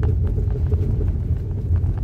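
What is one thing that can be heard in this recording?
A windshield wiper swipes across the glass.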